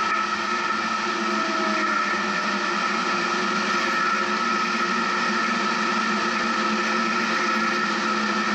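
A vehicle engine hums steadily while driving slowly.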